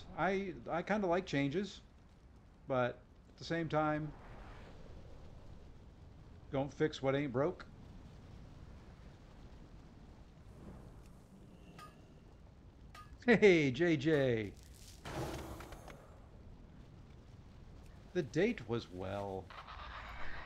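A middle-aged man talks calmly into a close microphone, in short bursts.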